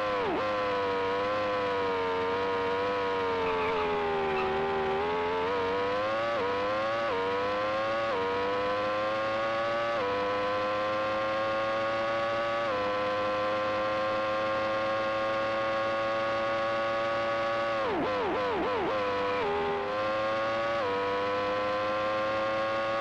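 A race car engine whines, revving up through the gears and dropping in pitch when braking.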